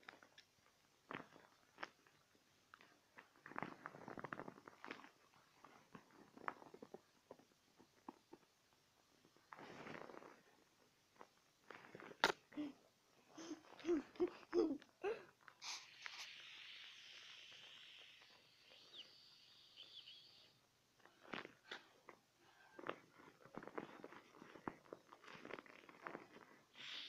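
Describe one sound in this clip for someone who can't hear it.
Fabric rustles and rubs close by.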